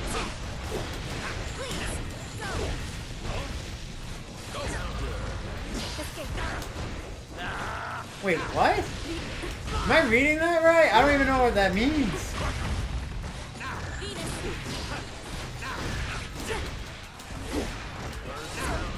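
Fighting game sound effects clash and thump.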